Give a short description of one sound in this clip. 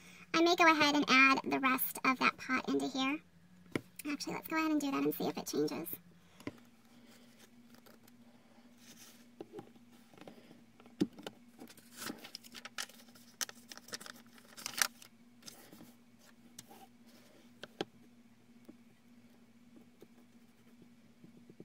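Paper sheets rustle as they are handled.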